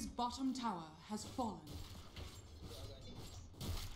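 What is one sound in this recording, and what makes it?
Magical spells whoosh and crackle in a video game battle.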